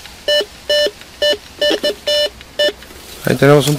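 A metal detector beeps in short, repeated tones.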